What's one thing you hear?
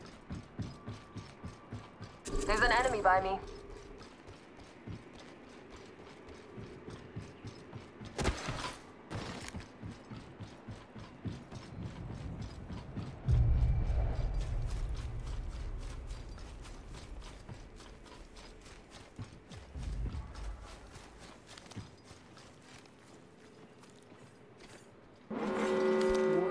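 Quick footsteps run on a hard metal floor.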